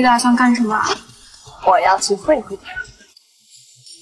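A young woman speaks with animation, close by.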